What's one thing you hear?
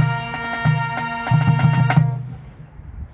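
A marching band plays a loud brass chord outdoors.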